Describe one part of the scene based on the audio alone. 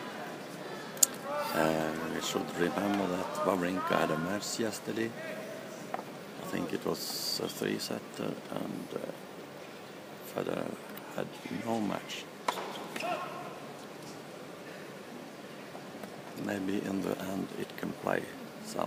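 A tennis ball is struck with sharp pops.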